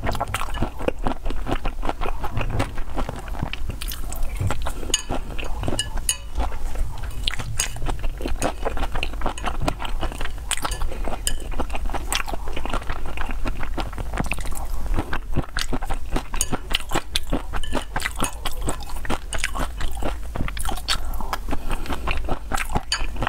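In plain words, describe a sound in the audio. A spatula scrapes and clinks against a bowl.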